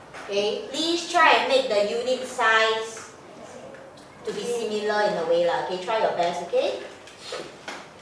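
A woman speaks with animation.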